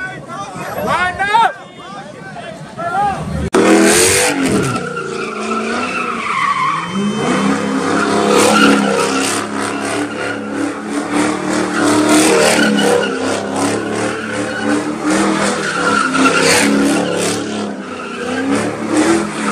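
Tyres screech as a car spins in circles.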